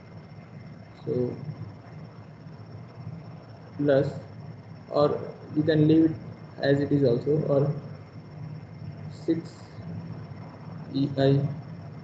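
A man explains calmly over an online call, in short phrases with pauses.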